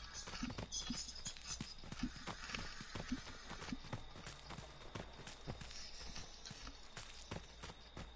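Bare feet patter quickly over the forest floor.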